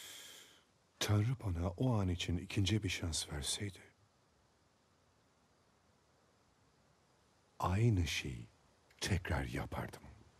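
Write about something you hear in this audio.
A middle-aged man speaks in a low, gruff voice, close by.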